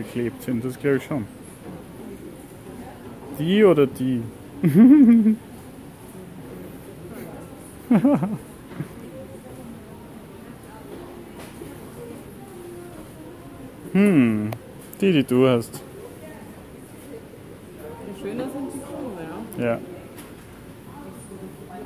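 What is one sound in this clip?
A young woman speaks casually in short bursts close by.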